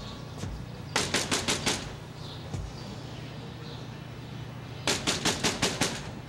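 A man knocks rapidly on a door.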